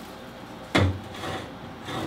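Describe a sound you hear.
A small object is set down with a light knock on a hard surface.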